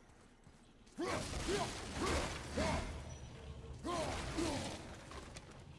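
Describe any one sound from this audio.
Axe blows smash through wood with loud crashes.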